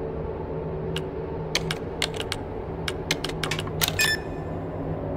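Keypad buttons beep as a code is entered.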